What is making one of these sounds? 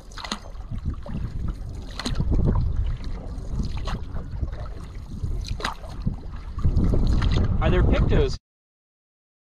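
Water laps against the hull of a canoe.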